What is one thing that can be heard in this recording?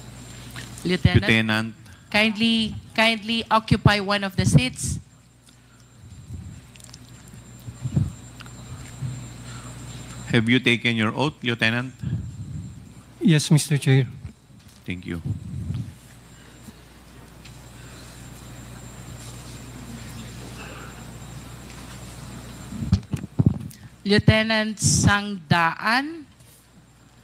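A middle-aged woman speaks calmly through a microphone.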